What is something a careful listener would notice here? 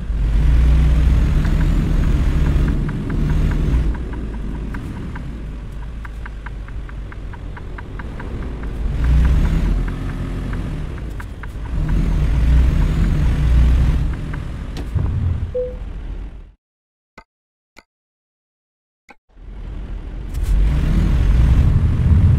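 A truck engine hums and rumbles steadily.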